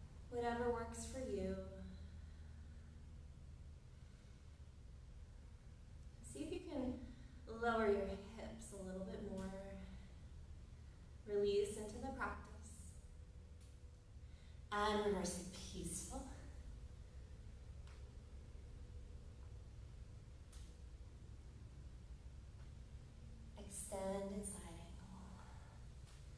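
A woman speaks calmly and softly, with pauses.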